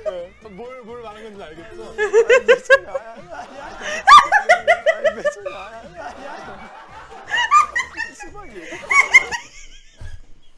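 A young woman laughs loudly and heartily close by.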